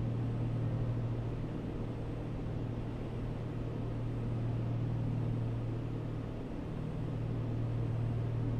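A propeller plane's engine drones steadily.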